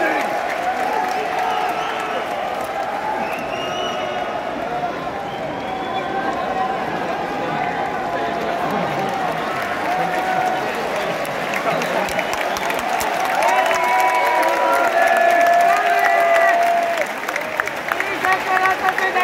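A large stadium crowd cheers and chants loudly.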